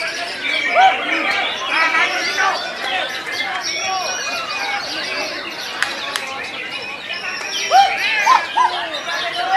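A caged songbird sings loud, varied whistling phrases.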